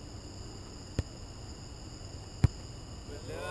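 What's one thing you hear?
A soccer ball is kicked with sharp thuds.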